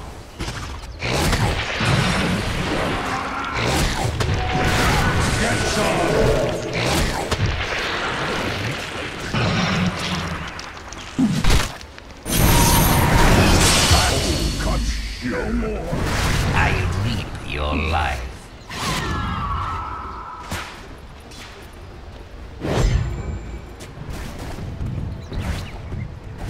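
Spells crackle and blast during a fight.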